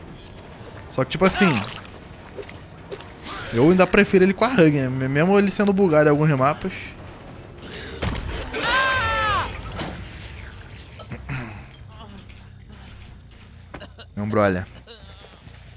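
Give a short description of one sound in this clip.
A young man talks and exclaims loudly into a close microphone.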